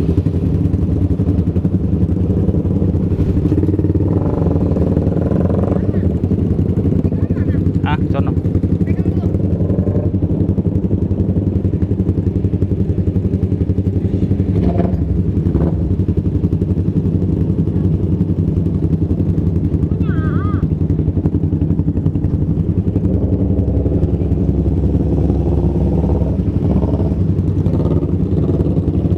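A motorcycle engine idles close by with a steady low rumble.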